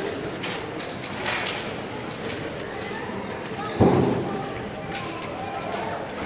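A woman speaks to an audience through a microphone.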